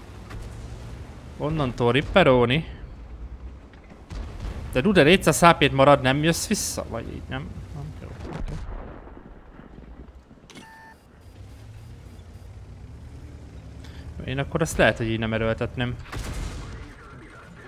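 Tank guns fire with booming blasts.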